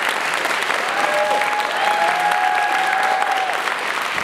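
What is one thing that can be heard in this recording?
Audience members cheer and whistle.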